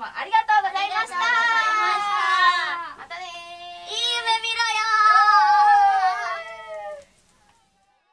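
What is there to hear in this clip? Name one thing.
Several young women call out a greeting together in cheerful, sing-song voices.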